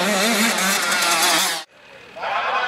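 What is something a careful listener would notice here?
A motocross bike engine revs loudly close by.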